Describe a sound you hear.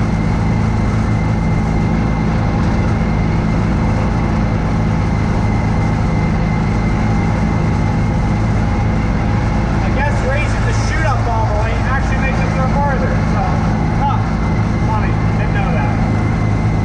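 A snowblower engine drones steadily close by.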